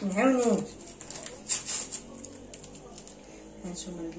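A paper sachet crinkles as it is handled.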